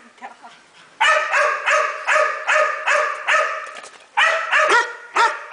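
A dog barks loudly and repeatedly close by.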